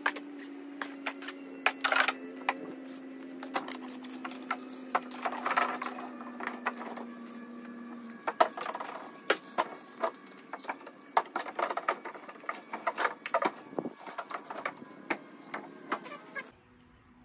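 Hard plastic parts knock and clatter as they are handled.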